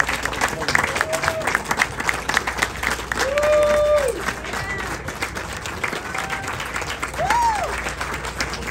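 Audience members whoop and cheer loudly.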